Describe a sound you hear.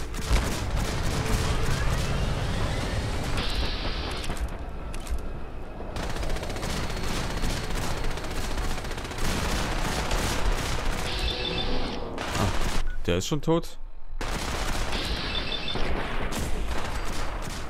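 Laser gunfire zaps and crackles repeatedly.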